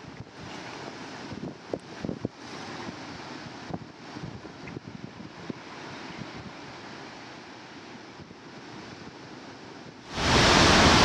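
Waves crash and wash over rocks along a shore.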